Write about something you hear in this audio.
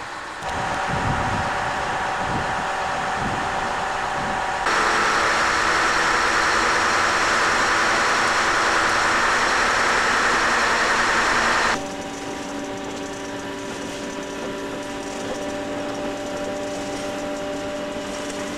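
A diesel locomotive engine drones steadily.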